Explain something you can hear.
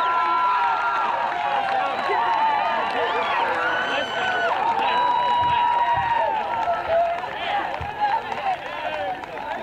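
A crowd of spectators cheers and shouts excitedly outdoors.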